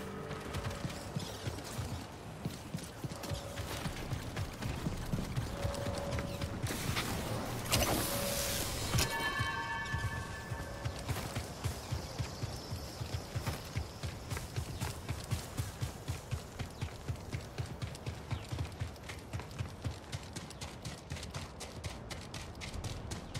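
Footsteps run quickly over stone and gravel.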